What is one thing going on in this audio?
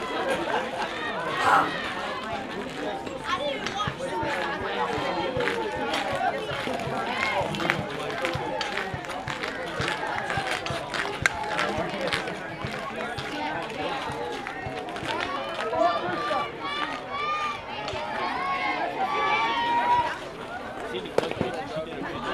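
Young women shout and cheer outdoors at a distance.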